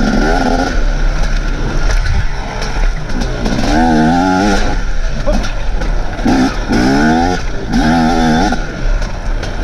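A dirt bike engine revs hard and rises and falls in pitch.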